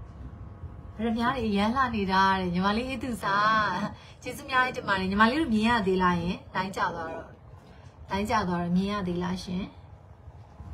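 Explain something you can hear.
A young woman talks close to the microphone with animation.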